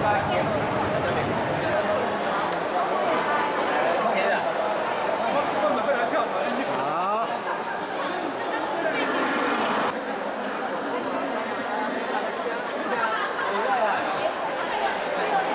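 A crowd of men and women chatters and calls out loudly.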